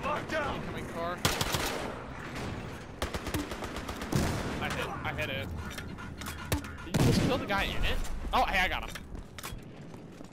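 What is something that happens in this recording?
Gunshots and explosions boom in short bursts.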